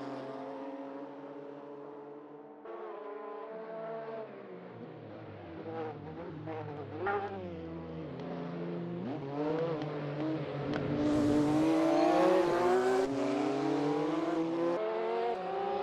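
A racing car engine roars loudly, its pitch rising and dropping as it changes gear.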